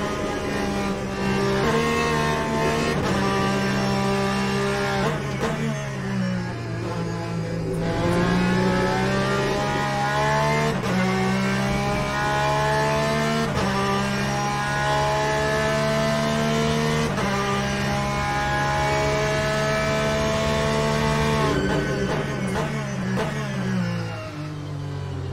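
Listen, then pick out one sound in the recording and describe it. A racing car engine roars loudly, climbing in pitch and dropping with each gear change.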